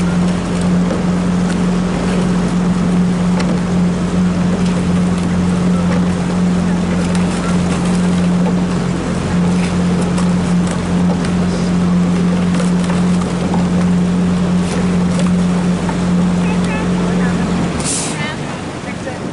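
Oars splash and dip into water in a steady rowing rhythm.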